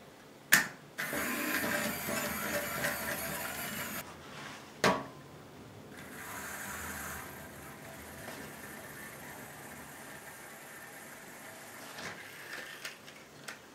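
A small toy motor whirs.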